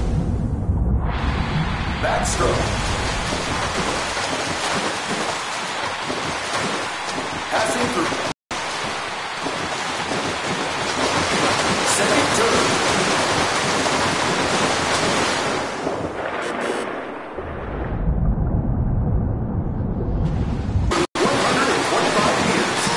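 A swimmer's freestyle strokes splash through pool water.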